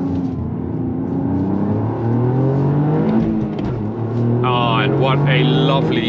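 A car engine roars from inside the cabin, rising in pitch as the car speeds up.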